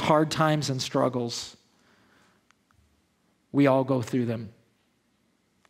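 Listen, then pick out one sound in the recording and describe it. A man speaks calmly and clearly into a microphone, pausing between phrases.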